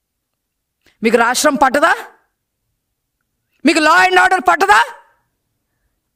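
A woman speaks forcefully into a microphone in short bursts.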